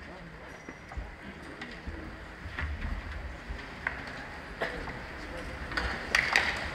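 High heels click on a wooden stage.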